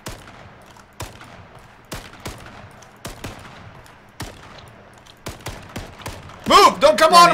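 Gunshots crack in sharp single bursts.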